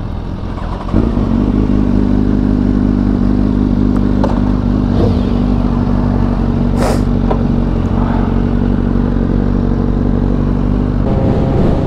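A second motorcycle engine starts and idles with a deep, steady rumble.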